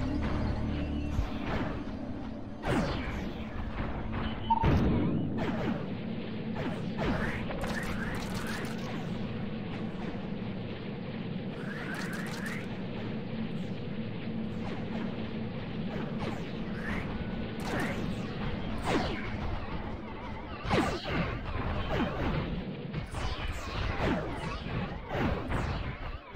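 Laser guns fire in short, sharp zaps.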